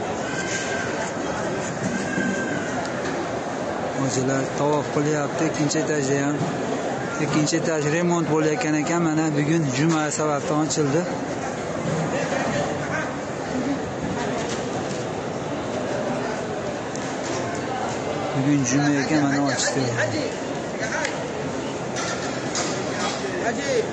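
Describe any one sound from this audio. A large crowd murmurs in a wide open space.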